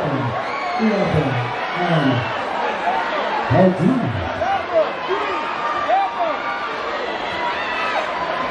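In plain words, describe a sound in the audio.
A large crowd cheers and screams at a loud concert.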